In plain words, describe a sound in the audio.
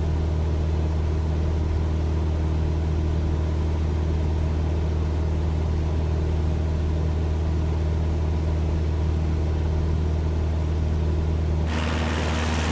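A small propeller plane's engine drones steadily, heard from inside the cockpit.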